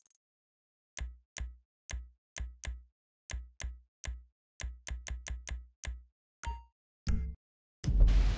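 Short clicks tick one after another as a menu is scrolled.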